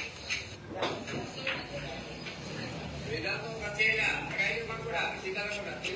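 Billiard balls clack together on the table.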